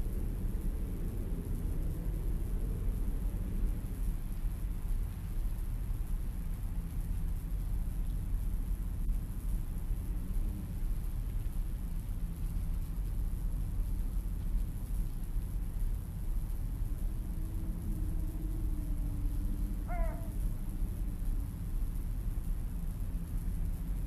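Wind blows steadily through the trees outdoors.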